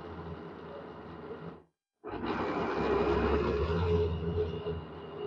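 An electric blender whirs loudly, blending liquid.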